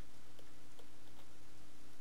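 Water swishes and bubbles softly.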